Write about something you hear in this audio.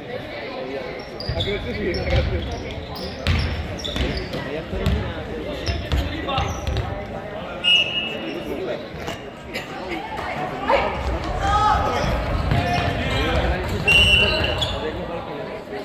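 A basketball bounces on a wooden floor with a hollow thud.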